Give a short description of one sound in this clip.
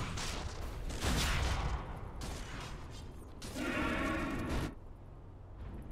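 Magic blasts and weapon clashes ring out in a fast fight.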